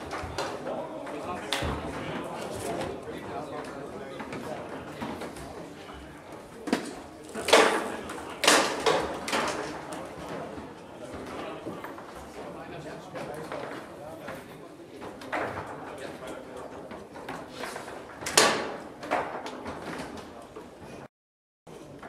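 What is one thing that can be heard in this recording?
Foosball rods clack and the ball knocks sharply against the table.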